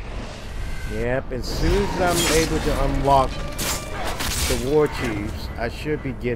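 Heavy blows land in a close fight.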